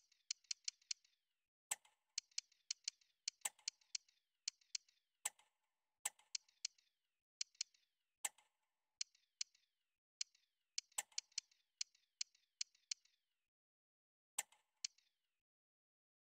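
Quick, bright menu clicks tick in rapid bursts.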